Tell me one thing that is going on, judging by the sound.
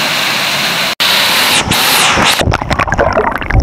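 Water churns and gurgles underwater.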